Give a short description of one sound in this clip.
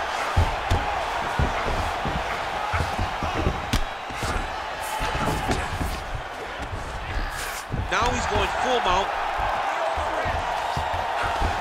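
Heavy punches thud repeatedly against a fighter's body.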